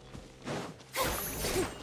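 A magical burst crackles and chimes loudly.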